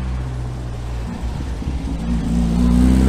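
An old van engine idles with a low rumble.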